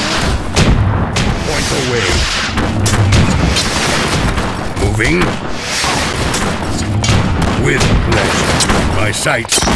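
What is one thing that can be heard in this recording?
Many soldiers shout during a battle.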